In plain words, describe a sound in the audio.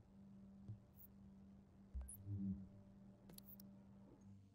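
Soft electronic clicks sound as menu options are picked.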